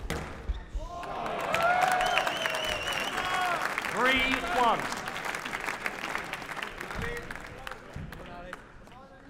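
A large crowd cheers and applauds loudly in an echoing hall.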